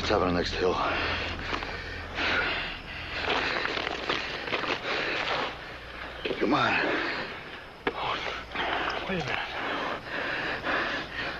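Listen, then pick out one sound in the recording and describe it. A man speaks tensely and urgently, close by.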